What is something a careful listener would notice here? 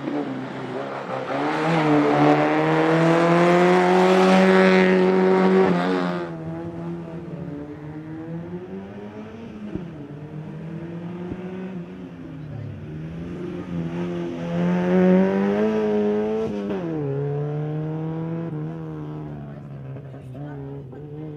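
A small race car engine revs hard and roars past, rising and falling in pitch as the car shifts gears.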